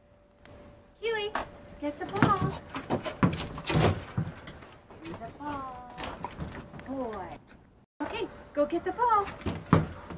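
A woman talks to a dog with animation, close by.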